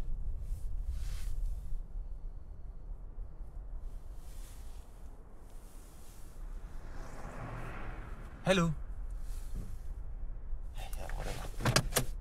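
A young man speaks quietly inside a car.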